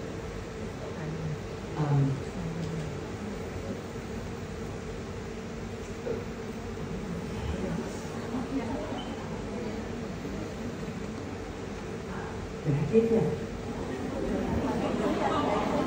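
A young man speaks casually into a microphone, heard through loudspeakers in a room with an echo.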